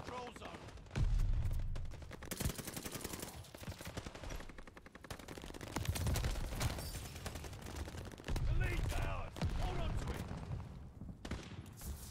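A machine gun fires rapid bursts with loud, booming shots.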